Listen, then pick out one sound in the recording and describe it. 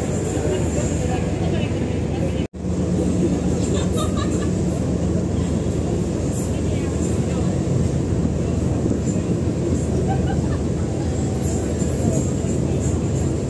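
A large ship's engine rumbles steadily across the water.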